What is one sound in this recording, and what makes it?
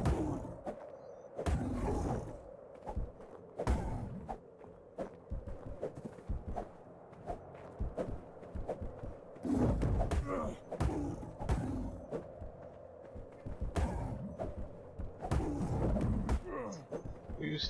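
A spear strikes flesh with dull thuds.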